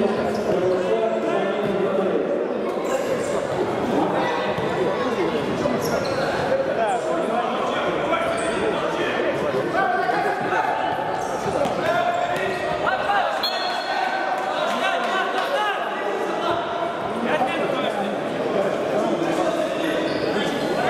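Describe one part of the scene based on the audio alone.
Sneakers squeak on a wooden court in an echoing sports hall.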